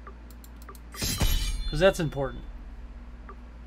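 A game menu plays a short chime as an item is bought.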